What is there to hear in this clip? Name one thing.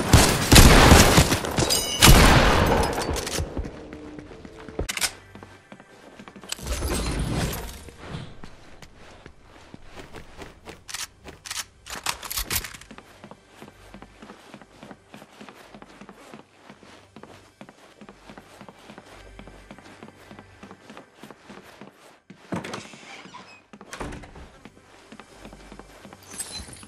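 Footsteps thud steadily on grass and wooden floors.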